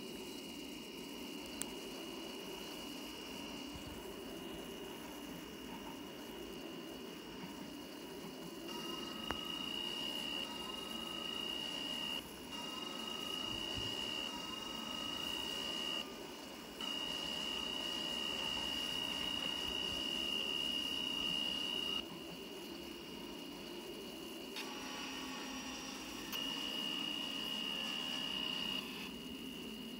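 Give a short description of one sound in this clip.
Train wheels rumble over the rails.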